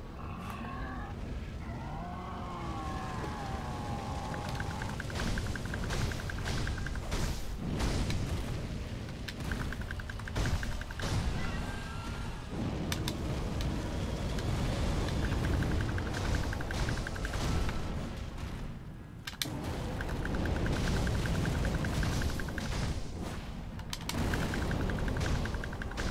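Flames roar and burst loudly.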